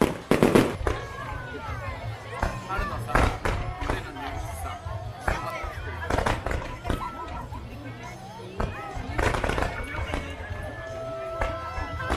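Firework rockets whistle as they rise.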